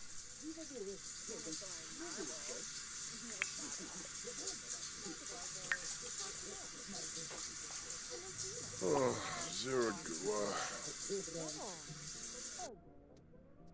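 A shower sprays water steadily.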